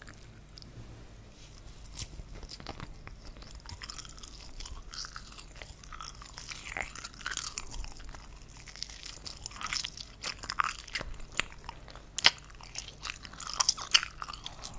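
A woman makes wet mouth sounds close to a microphone.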